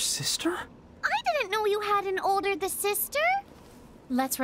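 A young man speaks with excitement.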